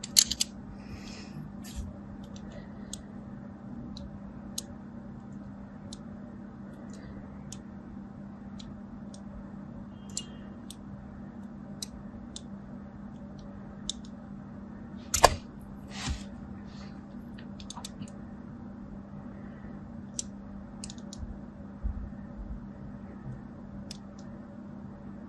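A blade scrapes and crunches through soap in soft, crisp clicks.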